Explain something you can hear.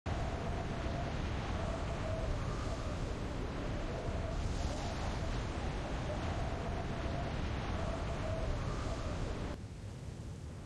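Wind rushes loudly past a skydiver in free fall.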